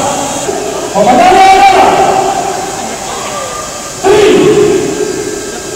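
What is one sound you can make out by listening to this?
A man's voice calls out loudly through a loudspeaker, echoing around the hall.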